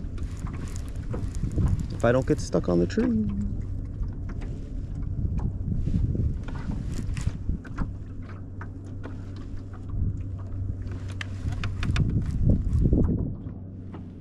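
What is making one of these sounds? A fishing reel whirs and clicks as its line is wound in.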